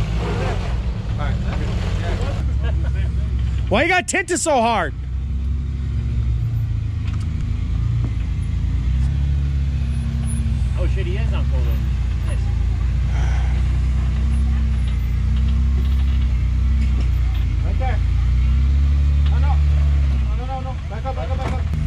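Tyres grind and scrape over rock.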